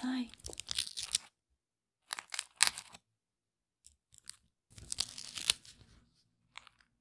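Gloved fingers rub and squeak against soft foam, with crisp crackles.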